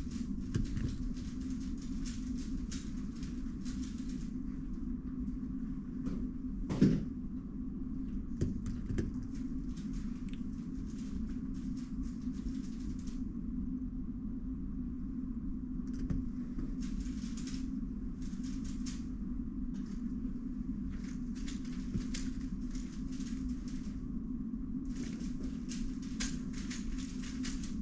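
Plastic puzzle cubes click and rattle as they are turned by hand, close by.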